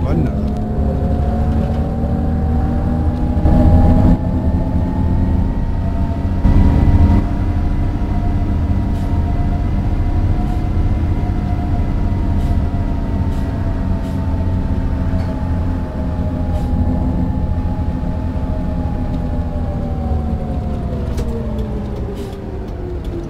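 A bus engine hums steadily, its pitch rising and then slowly falling.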